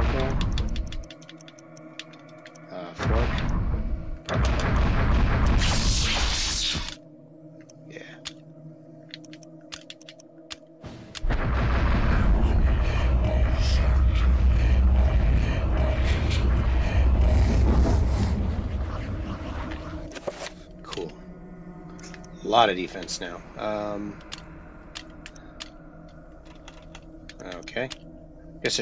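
Menu selection clicks and chimes sound in quick succession.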